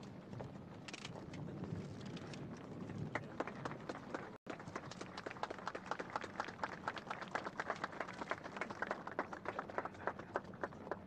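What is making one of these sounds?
A crowd of people murmurs close by.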